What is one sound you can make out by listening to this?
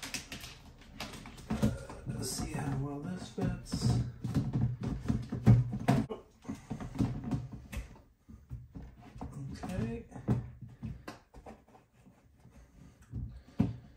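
Plastic pipes knock and clatter against a plastic tub.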